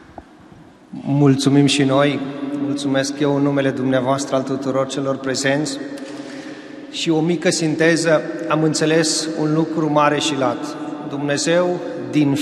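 A crowd of men and women sings together in a big echoing hall.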